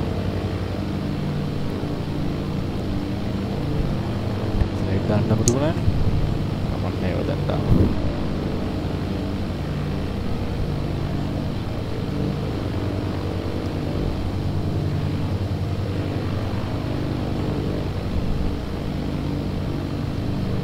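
A light aircraft engine drones steadily.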